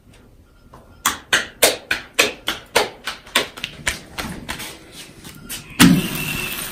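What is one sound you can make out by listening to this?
Hands pat tortilla dough in a quick rhythm.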